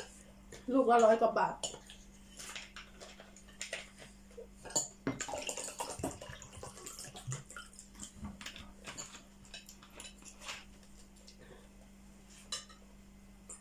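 Spoons and forks clink against plates.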